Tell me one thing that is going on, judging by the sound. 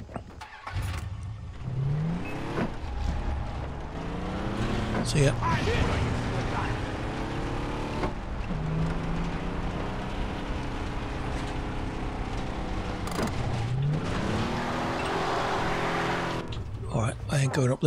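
A car engine revs and roars as it drives over rough ground.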